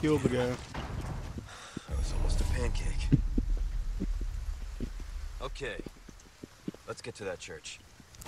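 A man mutters calmly nearby.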